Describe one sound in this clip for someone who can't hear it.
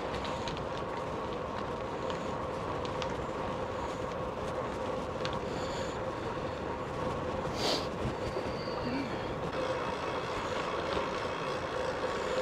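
Bicycle tyres roll over a rough lane.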